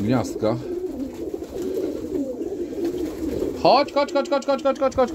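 Pigeons flap their wings.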